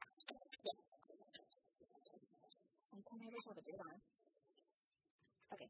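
Cards rustle and tap together close by.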